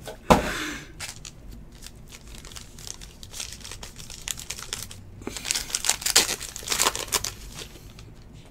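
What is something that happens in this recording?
A foil wrapper crinkles and tears as a pack is opened by hand.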